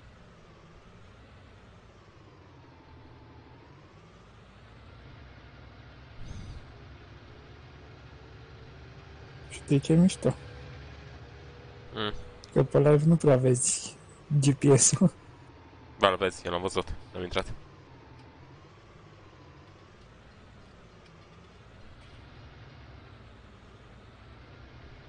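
A tractor engine hums steadily, rising and falling in pitch as it speeds up and slows down.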